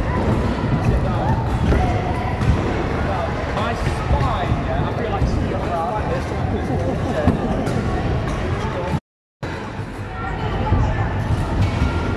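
Wheelchair wheels roll over a hard floor in a large echoing hall.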